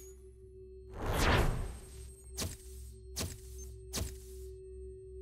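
A game interface sounds a series of swooshes and chimes.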